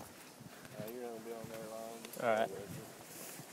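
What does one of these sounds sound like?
A man speaks nearby outdoors.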